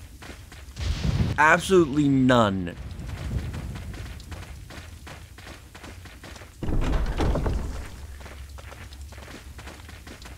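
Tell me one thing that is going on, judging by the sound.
Footsteps crunch on a gravel path.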